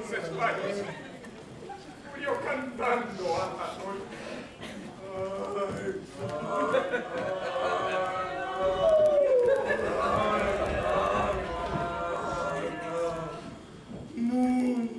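Several actors shout and talk with animation, heard from the audience in an echoing hall.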